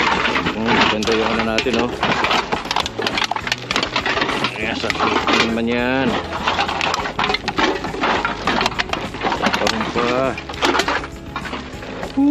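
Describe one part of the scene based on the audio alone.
Aluminium cans clink as they drop into a cardboard box.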